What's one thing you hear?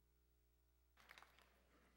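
A large audience suddenly breaks into applause in a big hall.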